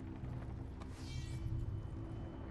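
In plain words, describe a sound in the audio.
A sword slides out of its sheath with a metallic ring.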